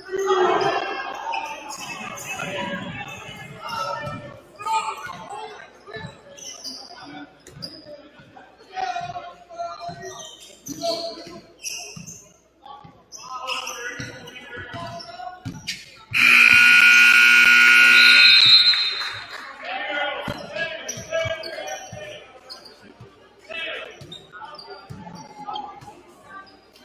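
Young players shout and call out across the court.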